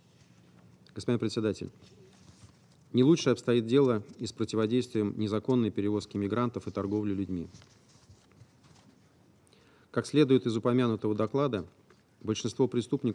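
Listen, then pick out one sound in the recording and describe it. A man reads out a statement calmly into a microphone.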